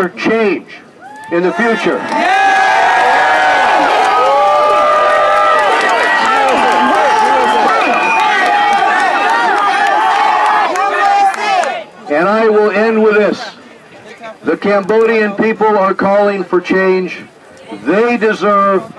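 A middle-aged man speaks forcefully through a microphone and loudspeaker.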